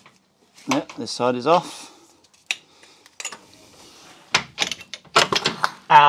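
Plastic parts click and rattle as a hose is pulled loose.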